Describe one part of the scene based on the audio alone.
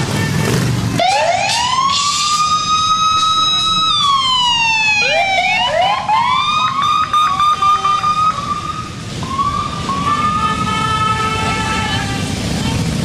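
A siren wails up and down close by.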